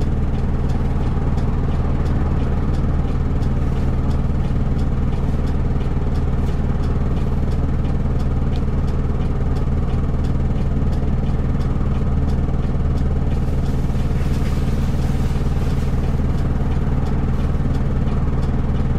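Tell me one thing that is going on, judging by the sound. A diesel city bus engine idles, heard from inside the bus.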